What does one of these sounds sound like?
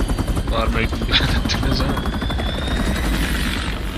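A heavy aircraft engine rumbles low and steadily close by.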